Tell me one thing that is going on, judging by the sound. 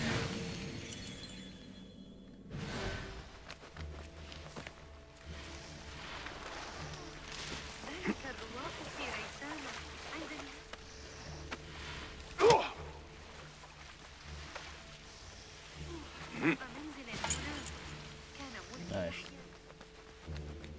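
Footsteps move softly over stone.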